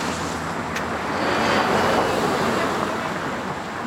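A vehicle drives past on the road.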